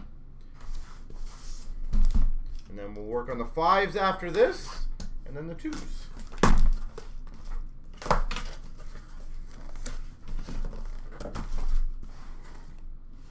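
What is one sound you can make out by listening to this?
Cardboard boxes thump as they are set down.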